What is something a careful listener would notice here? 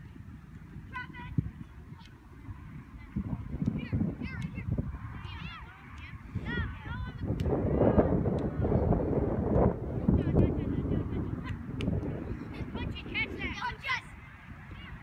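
Young girls shout and call out to each other across an open field.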